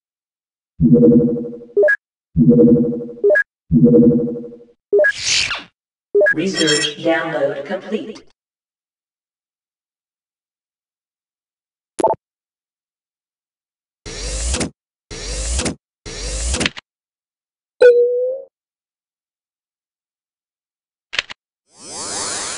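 Electronic game interface tones beep and whoosh as panels open and close.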